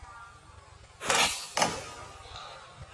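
A slingshot band snaps as a shot is fired.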